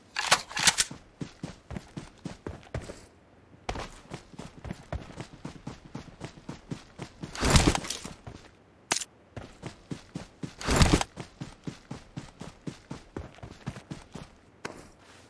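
Footsteps thud quickly on grass as a game character runs.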